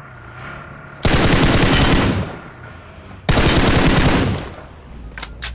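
Gunfire rattles in loud rapid bursts.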